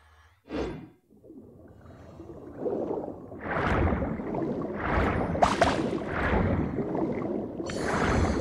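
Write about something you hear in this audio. Water rushes and bubbles as a swimmer moves underwater.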